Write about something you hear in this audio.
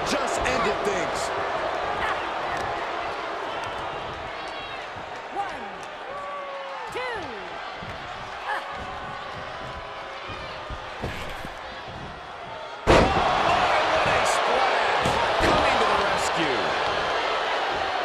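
A large crowd cheers and roars throughout.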